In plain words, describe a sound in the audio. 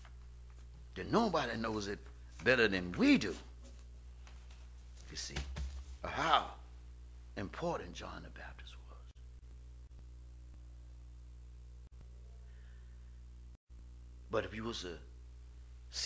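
A man preaches through a microphone in short, emphatic phrases with long pauses.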